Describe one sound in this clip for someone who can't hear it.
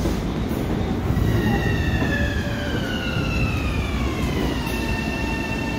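A train's motors whine and slowly fall in pitch.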